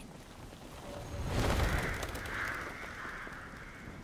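A flock of birds bursts into flight with a rushing whoosh of wings.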